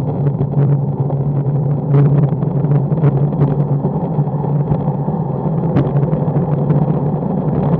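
Wind buffets loudly against a microphone.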